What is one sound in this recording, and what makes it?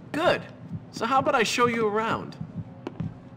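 Another young man answers calmly, close by.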